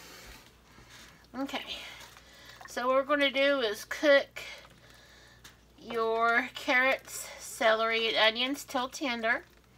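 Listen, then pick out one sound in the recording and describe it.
Sliced mushrooms drop softly into a pot.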